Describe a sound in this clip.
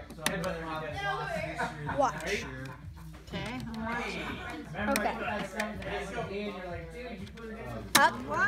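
Plastic toy parts clack and rattle.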